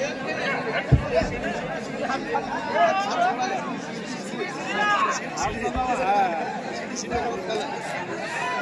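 A large outdoor crowd chatters loudly.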